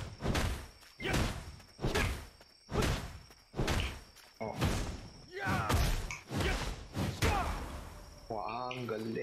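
Heavy blows strike again and again in a quick, steady rhythm.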